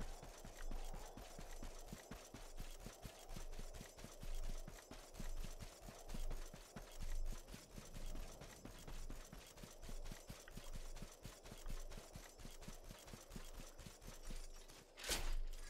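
Quick footsteps patter over grass and dirt.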